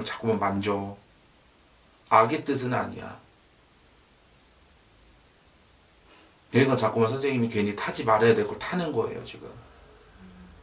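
A man speaks calmly and closely into a microphone, with pauses.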